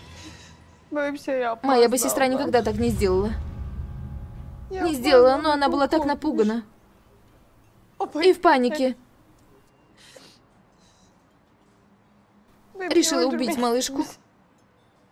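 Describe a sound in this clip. A young woman speaks tearfully, close by.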